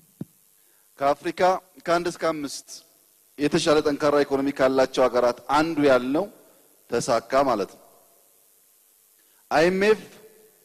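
A man speaks with animation into a microphone, heard over a loudspeaker.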